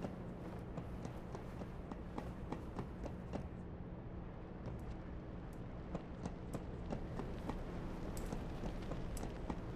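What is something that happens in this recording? Soft footsteps tap on a hard floor.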